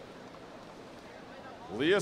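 Swimmers splash through the water of a pool.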